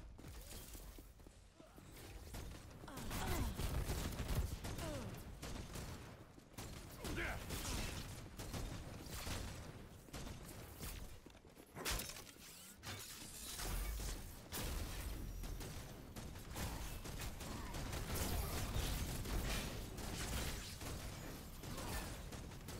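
Gunfire and energy blasts crackle and boom in a game fight.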